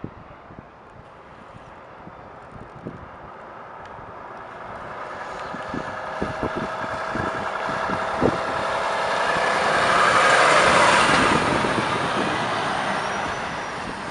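A modern truck's engine roars as it drives up close and past.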